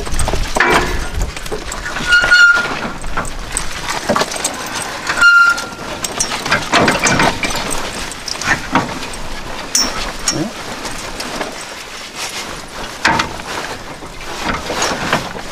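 Metal parts of a trailer hitch clank and scrape as they are handled.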